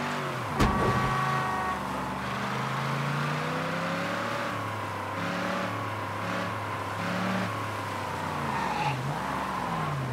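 Tyres screech on the road as a car turns.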